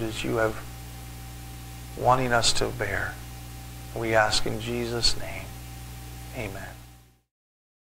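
A man speaks calmly into a microphone in an echoing hall.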